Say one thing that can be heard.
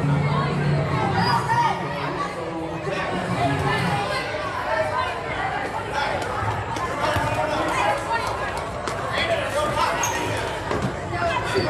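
A crowd of people chatters and calls out in a large echoing gym.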